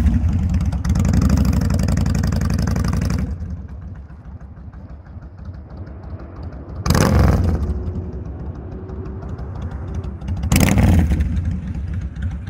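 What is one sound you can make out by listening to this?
A motorcycle engine rumbles and revs loudly as the motorcycle rides in circles.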